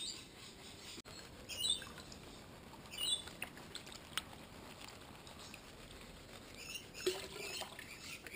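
Water sloshes and swirls in a pan.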